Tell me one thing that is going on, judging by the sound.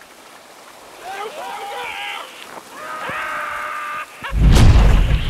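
A man whoops with excitement while sliding.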